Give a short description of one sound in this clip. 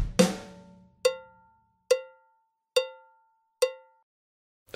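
A cymbal is tapped a few times, evenly spaced.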